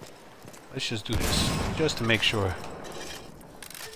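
A heavy gun fires with a loud, echoing boom.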